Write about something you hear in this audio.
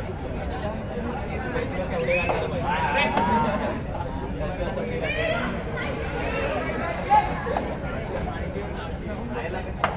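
Players call out and shout during play.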